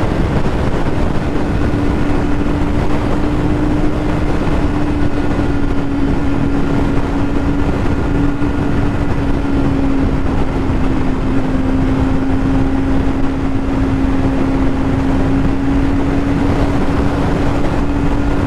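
Wind rushes loudly past the rider.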